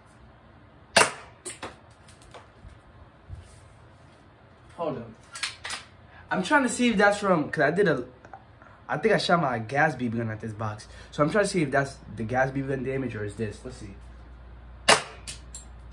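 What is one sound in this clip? A toy gun clicks sharply.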